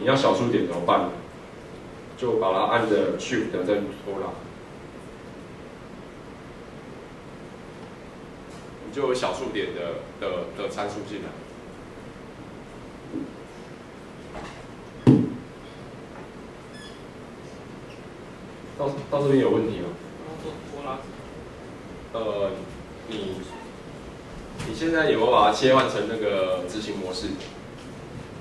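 A young man speaks calmly into a microphone, with pauses.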